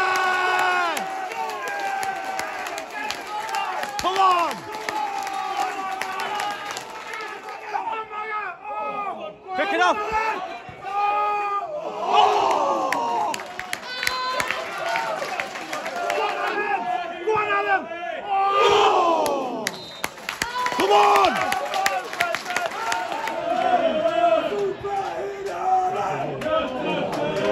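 A crowd of fans chants and sings loudly outdoors.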